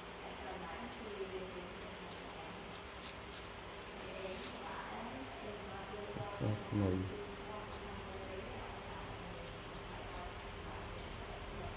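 Fabric straps rustle softly as they are knotted by hand.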